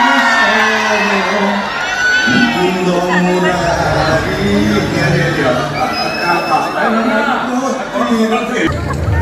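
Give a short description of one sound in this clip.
Film music with singing plays loudly through loudspeakers in a large hall.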